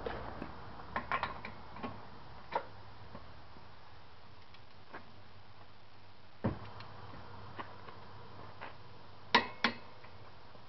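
A ratchet wrench clicks as a nut is turned.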